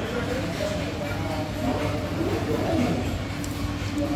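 A woman bites and chews crunchy food.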